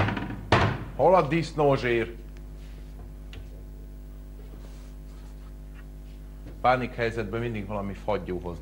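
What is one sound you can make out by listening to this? A man speaks calmly, close by.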